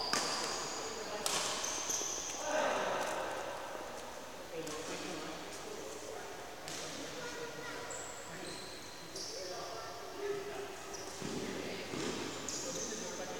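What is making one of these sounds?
A racket hits a shuttlecock with sharp smacks in an echoing hall.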